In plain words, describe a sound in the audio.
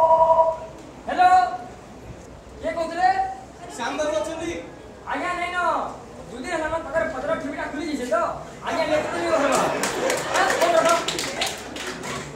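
A young man speaks loudly through a microphone in an echoing room.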